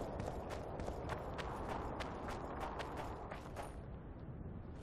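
Footsteps crunch on gravel at a steady pace.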